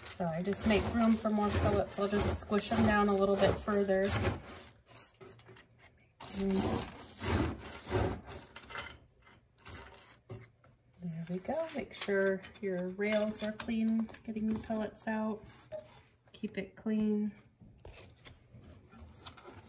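Wood pellets rustle and clatter as hands stir them.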